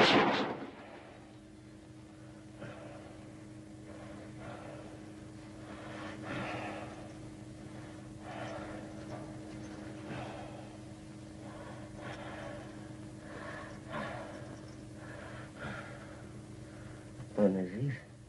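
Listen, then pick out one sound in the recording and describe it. A woman speaks softly and sadly, close by.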